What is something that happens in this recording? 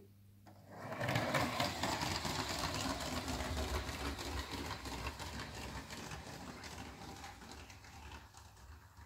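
A toy train whirs and rattles along a plastic track.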